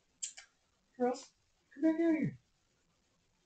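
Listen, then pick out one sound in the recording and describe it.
A kitten meows loudly a few times, close by.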